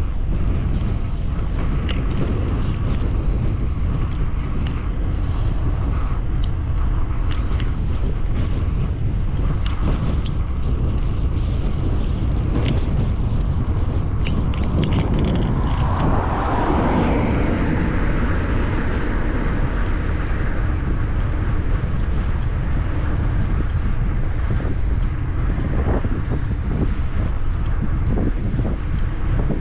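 Wind roars steadily past, loud and buffeting.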